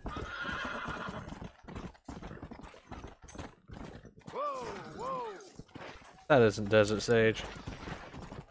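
Horse hooves pound steadily on dry ground at a gallop.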